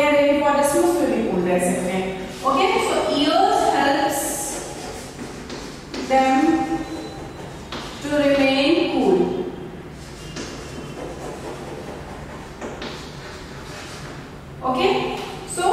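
A woman speaks calmly and clearly, as if teaching, close by.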